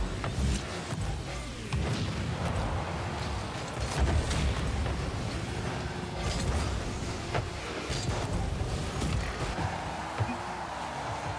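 A car engine roars and boosts steadily.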